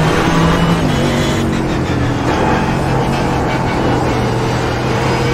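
A race car engine roars loudly and drops in pitch as the car slows.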